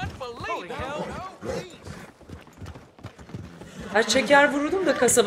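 Horse hooves clop steadily on a dirt road.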